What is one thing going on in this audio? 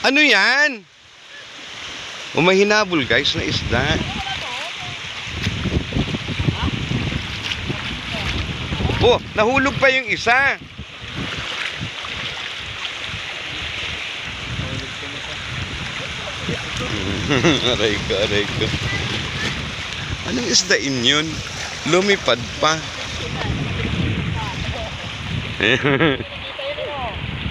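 Small waves wash steadily onto the shore.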